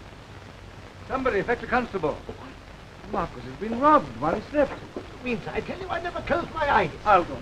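Men talk with one another.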